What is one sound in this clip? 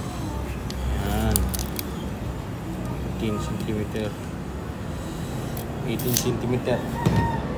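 A metal tape measure slides out and snaps back with a rattling click.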